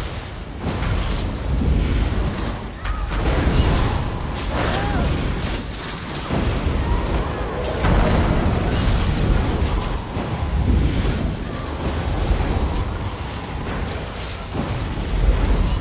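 Monsters roar and grunt as they fight.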